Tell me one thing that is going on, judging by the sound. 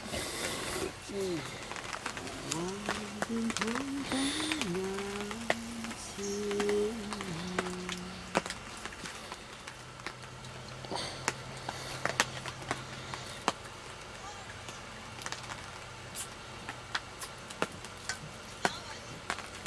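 Raindrops patter on a tarp overhead.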